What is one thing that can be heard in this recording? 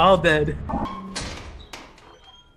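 A heavy door bangs open.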